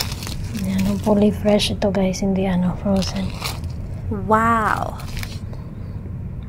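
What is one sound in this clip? Plastic wrap crinkles as it is pulled off a plate.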